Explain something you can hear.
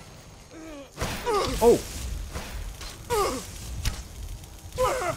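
Electric magic crackles and sizzles loudly.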